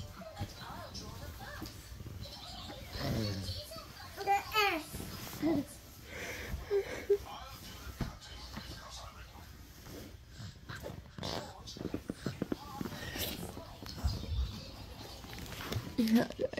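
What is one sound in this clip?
A young woman sobs and whimpers close by.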